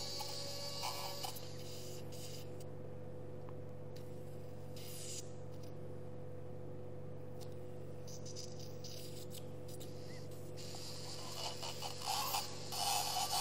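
A small high-speed drill whirs and grinds in bursts.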